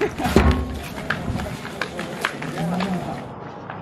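Footsteps shuffle on a hard tiled floor.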